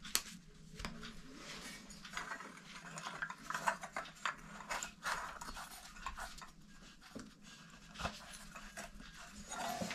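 Gloved hands rustle while handling a light fitting.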